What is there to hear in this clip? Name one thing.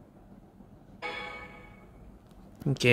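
A short bright chime rings out.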